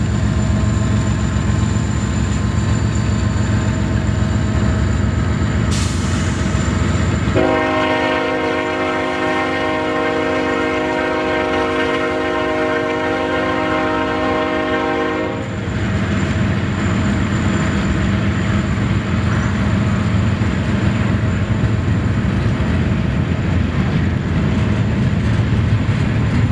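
Diesel locomotives rumble loudly as they roll past close by.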